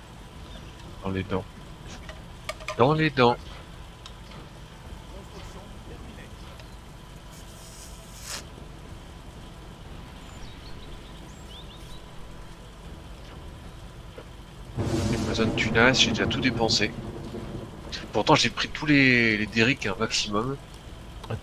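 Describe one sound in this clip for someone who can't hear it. A man talks calmly and close to a microphone, in short bursts.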